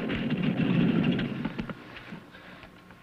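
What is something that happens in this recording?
A man speaks close by in a low, earnest voice.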